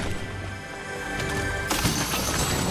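A treasure chest in a game opens with a shimmering chime.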